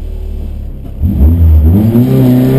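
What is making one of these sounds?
A car engine revs up loudly as the car pulls away.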